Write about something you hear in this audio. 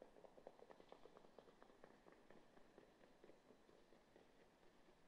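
Horses' hooves pound rapidly on a dirt track in the distance.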